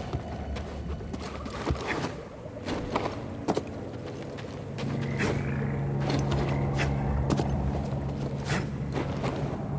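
Footsteps scuff and thud on rock.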